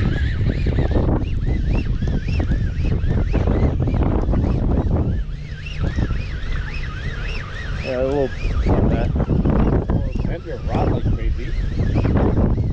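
An outboard motor hums steadily.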